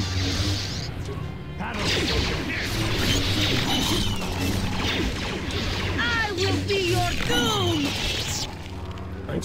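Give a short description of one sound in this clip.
Lightsaber blades hum and clash in a fast fight.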